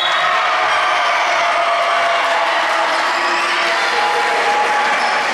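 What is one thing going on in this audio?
Young women talk and call out in a large echoing hall.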